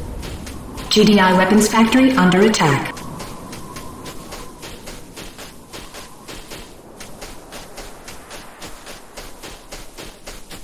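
A gun fires rapid, steady shots.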